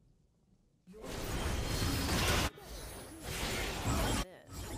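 Loud game spell blasts and impacts crash in a fight.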